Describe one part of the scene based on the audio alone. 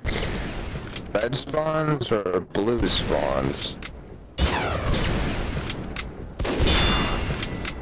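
A rifle fires several sharp, loud shots.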